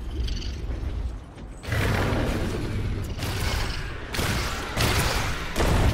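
Laser beams fire with sharp zaps.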